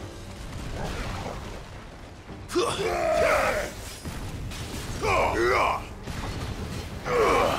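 Fiery blasts explode with deep, rumbling booms.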